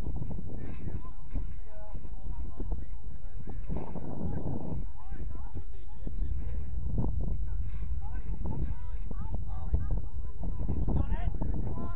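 Young players shout to each other across an open field, far off.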